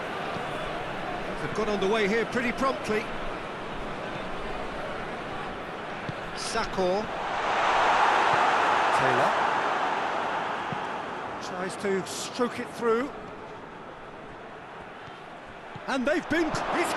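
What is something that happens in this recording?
A stadium crowd murmurs and roars, swelling loudly for a few seconds.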